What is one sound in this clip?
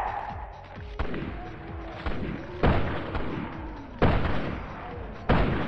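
Gunshots ring out in a large echoing hall.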